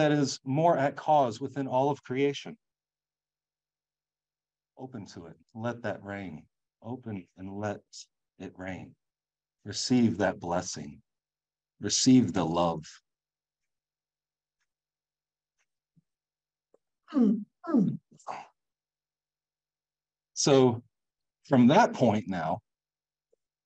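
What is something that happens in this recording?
A man speaks with animation into a microphone, pausing between phrases.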